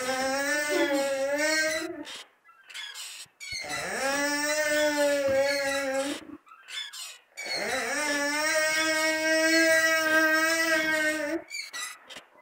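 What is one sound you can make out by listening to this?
A child sings long, drawn-out notes close by.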